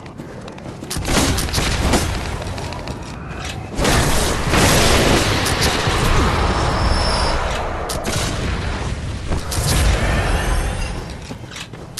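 Weapons clash and slash loudly in a game fight.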